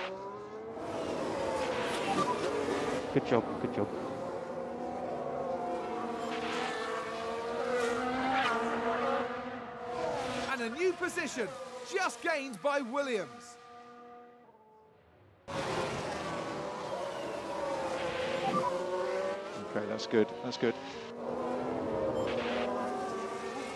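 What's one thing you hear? Racing car engines scream at high revs, rising and falling as the cars pass and shift gears.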